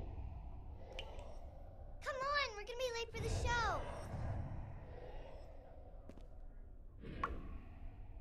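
A swirling magical whoosh sweeps past several times.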